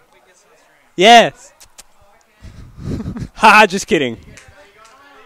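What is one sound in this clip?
A young man laughs loudly into a headset microphone.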